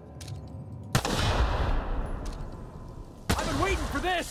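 An explosion bursts with a heavy boom.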